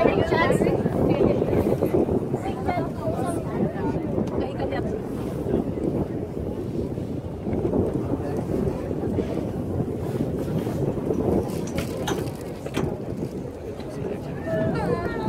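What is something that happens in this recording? Several people chatter nearby.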